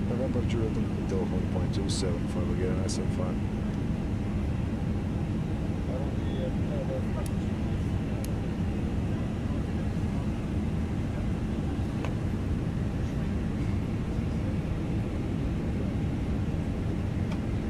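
Aircraft engines hum steadily at idle.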